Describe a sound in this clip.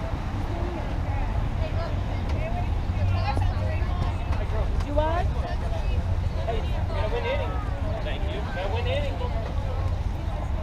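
Players call out and chatter at a distance across an open field.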